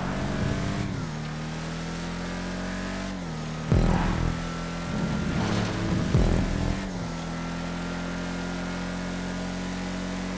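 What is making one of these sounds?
A car engine roars steadily, its pitch shifting as it changes gear.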